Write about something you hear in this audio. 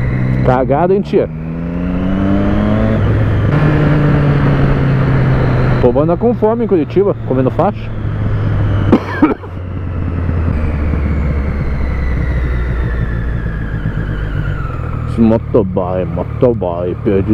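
A motorcycle engine hums and revs up and down while riding.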